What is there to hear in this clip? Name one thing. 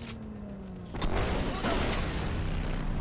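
Glass shatters and debris crashes.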